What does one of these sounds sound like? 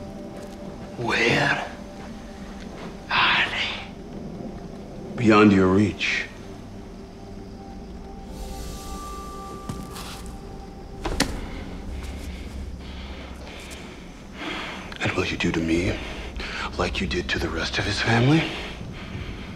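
A man speaks slowly in a low, deep voice, with long pauses.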